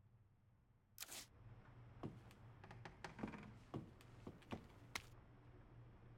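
Footsteps walk across a wooden floor indoors.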